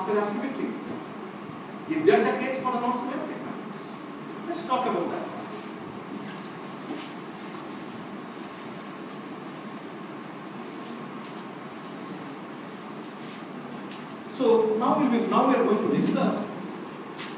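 A middle-aged man lectures aloud in a room with a slight echo.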